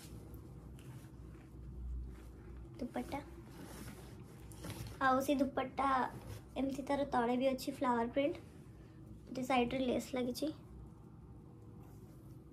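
Silky fabric rustles as it is unfolded and shaken.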